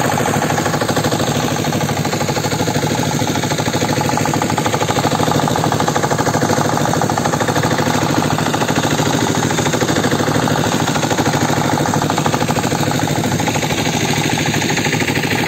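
A boat's outboard engine drones steadily up close.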